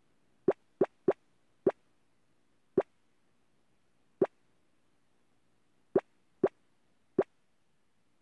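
Short soft game clicks sound now and then.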